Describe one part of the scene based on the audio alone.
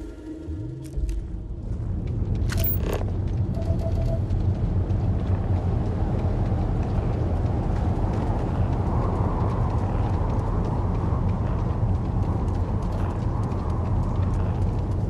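Wind blows steadily with a low rumble outdoors.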